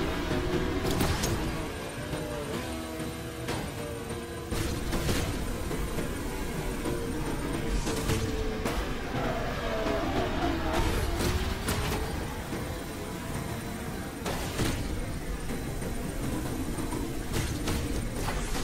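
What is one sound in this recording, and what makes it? Whooshing boost bursts rush past.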